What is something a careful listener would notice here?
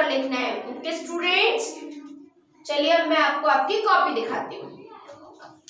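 A young girl speaks clearly and calmly close to a microphone.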